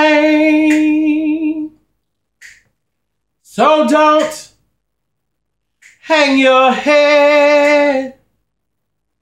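A man sings close by in long held notes.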